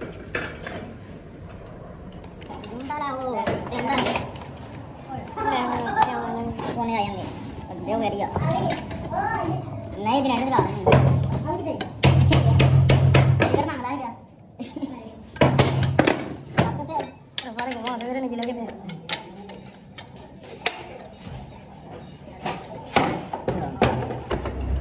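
Metal parts clink and knock together.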